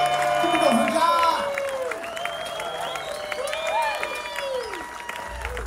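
A live rock band plays loudly, amplified through speakers.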